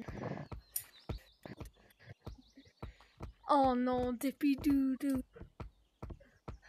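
Hands knock on wooden rungs while climbing.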